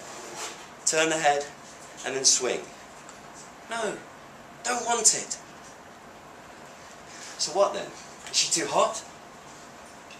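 A young man reads aloud slowly into a microphone, with pauses between phrases.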